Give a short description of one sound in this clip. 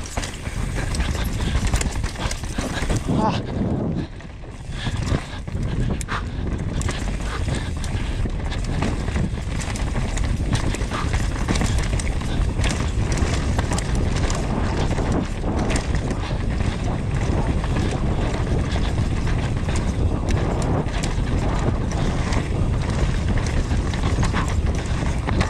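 Bike tyres rumble and skid over dirt and roots.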